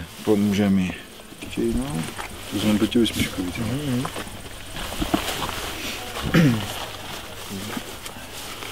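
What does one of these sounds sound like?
A middle-aged man speaks close by, calmly.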